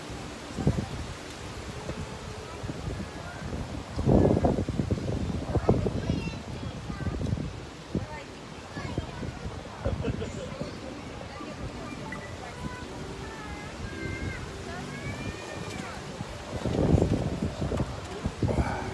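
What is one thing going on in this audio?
A man talks calmly close to the microphone, outdoors.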